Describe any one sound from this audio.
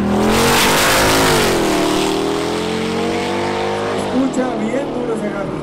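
Sports car engines roar loudly as the cars accelerate away.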